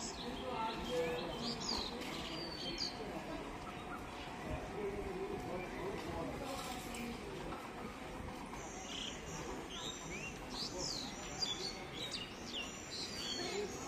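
Men and women talk faintly in the distance, outdoors.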